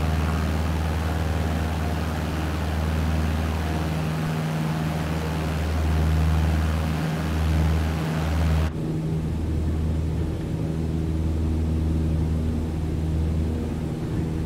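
A small propeller plane's engine drones steadily, sounding duller from 9 seconds on.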